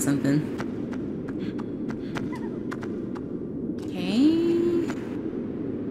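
Footsteps tap lightly on stone.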